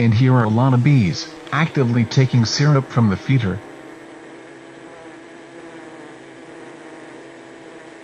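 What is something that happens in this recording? Bees buzz steadily close by.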